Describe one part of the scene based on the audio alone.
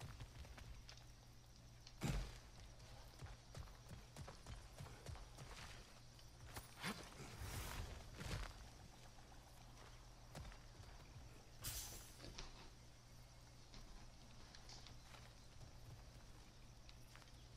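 Footsteps crunch on dry ground and wooden boards.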